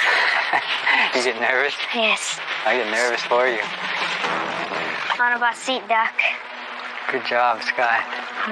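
A boy talks with animation close by.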